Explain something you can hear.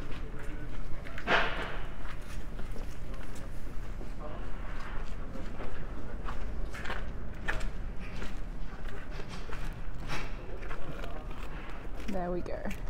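Footsteps tap on cobblestones nearby.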